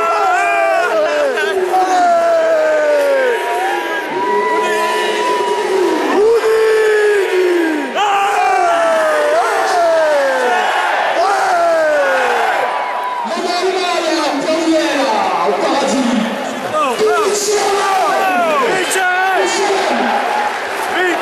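A large crowd sings and chants loudly in an open stadium.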